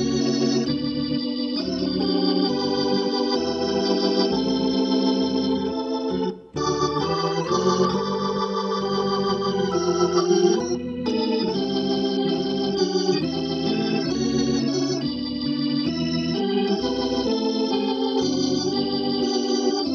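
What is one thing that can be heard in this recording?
An electric organ plays a lively melody with chords.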